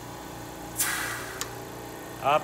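Compressed air hisses sharply from a pneumatic valve.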